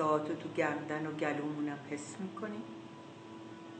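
A middle-aged woman speaks calmly and softly, close to the microphone.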